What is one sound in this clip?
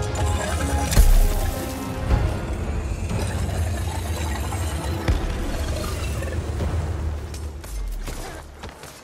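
A large creature roars and stomps heavily.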